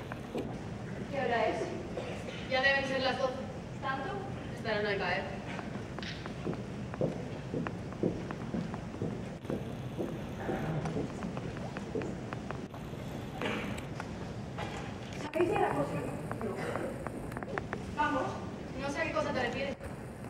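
A woman speaks clearly on a stage in a large echoing hall.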